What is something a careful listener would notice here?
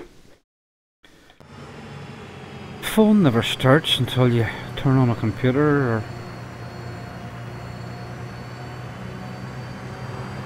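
A city bus's diesel engine hums while cruising along a road.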